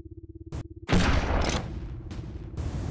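A laser gun fires with a buzzing zap.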